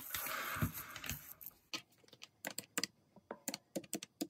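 Calculator keys click as they are pressed.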